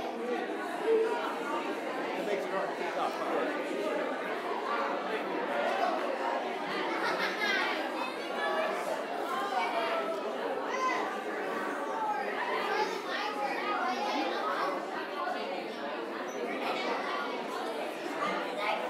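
A crowd of men, women and children chatter all around in an echoing hall.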